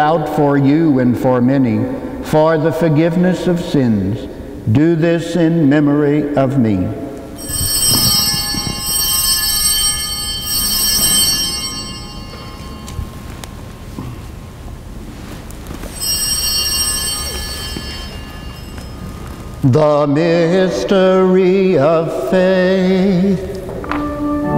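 An elderly man chants in a steady voice through a microphone, in a large echoing hall.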